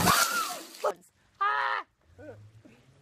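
A young woman shrieks loudly.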